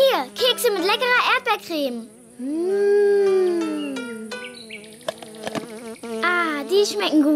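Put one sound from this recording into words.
A young girl's voice speaks with animation.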